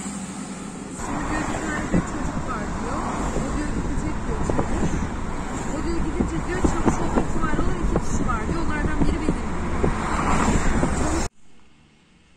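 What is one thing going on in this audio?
Traffic rumbles past on a busy road.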